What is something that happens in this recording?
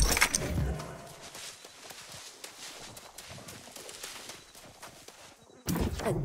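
Footsteps tread through grass.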